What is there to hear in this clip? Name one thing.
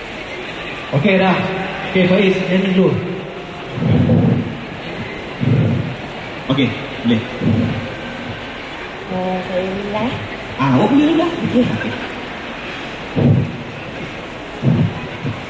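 A man speaks loudly into a microphone over loudspeakers.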